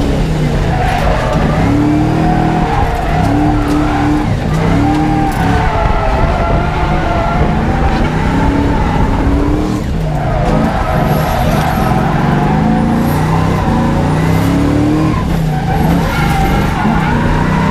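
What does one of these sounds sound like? Tyres screech and squeal as the car slides.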